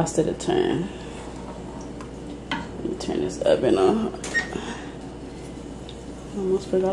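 A wooden spoon stirs and scrapes through a thick sauce in a pan.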